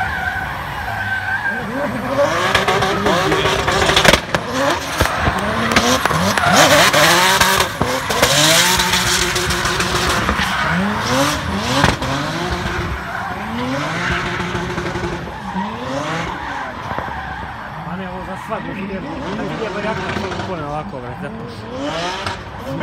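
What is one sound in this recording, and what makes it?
A car engine revs hard and whines up and down in pitch.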